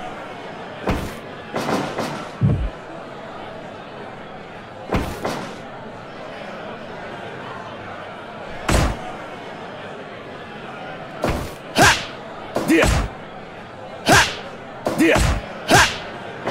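Blows land with sharp slaps and thuds.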